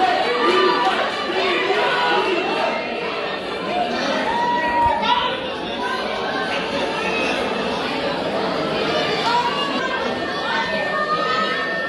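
Music with a singing voice plays through a loudspeaker in a large room.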